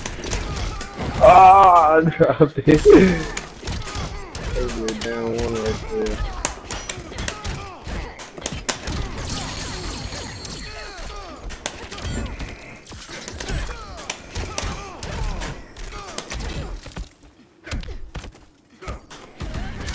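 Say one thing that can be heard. Game punches and impacts thud and crack rapidly.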